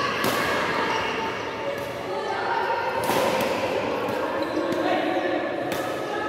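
Rackets smack a shuttlecock back and forth, echoing in a large hall.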